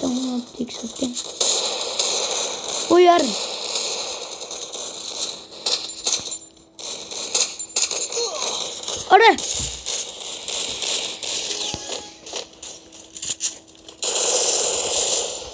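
Gunshots crack in quick bursts in a video game.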